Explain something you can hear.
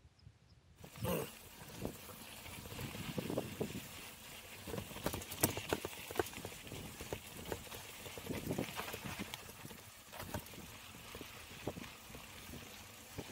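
A mountain bike's frame and parts rattle over bumps.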